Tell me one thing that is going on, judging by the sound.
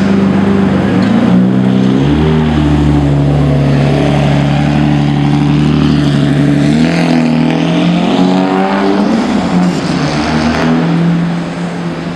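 A sports car engine revs and roars as the car pulls away down the street.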